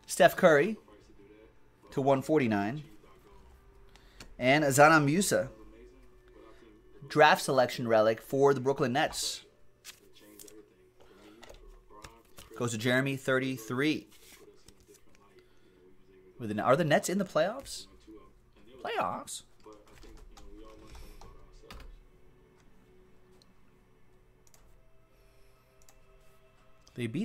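Trading cards in plastic sleeves rustle and click in a man's hands.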